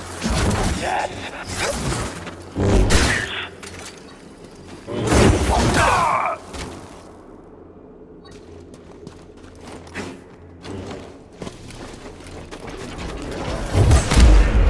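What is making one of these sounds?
An energy blade hums and whooshes as it swings.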